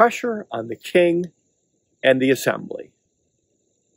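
An elderly man speaks calmly and close through a microphone.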